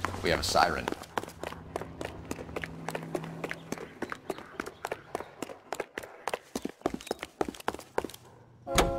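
Hard-soled footsteps run on pavement.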